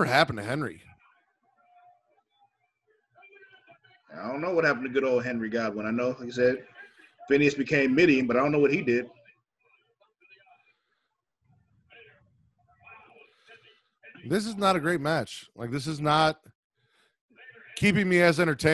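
A man talks over a headset microphone, in short bursts with pauses.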